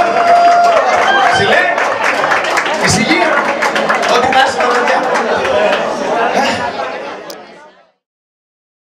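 A man sings loudly into a microphone.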